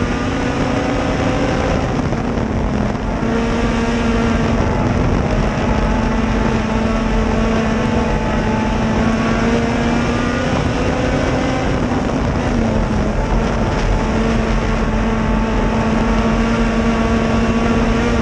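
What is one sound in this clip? A race car engine roars loudly up close, its pitch dipping and rising as the driver lets off and accelerates.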